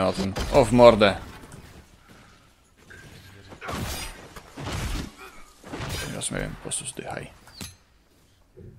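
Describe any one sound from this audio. Fire bursts and roars in magical blasts.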